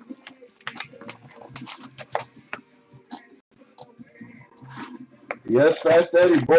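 Cardboard boxes tap and slide on a wooden desk.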